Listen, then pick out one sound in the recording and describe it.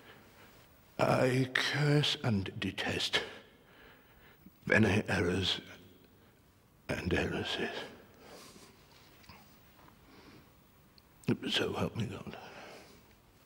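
An elderly man speaks intensely in short bursts, close by.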